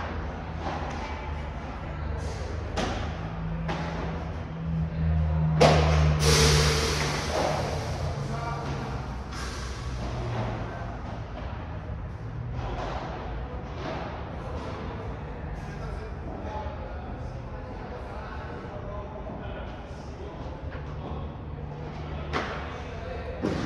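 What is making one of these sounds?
Footsteps squeak and shuffle on a court.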